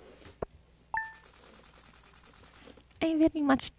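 Coins tally with a quick run of rapid ticks.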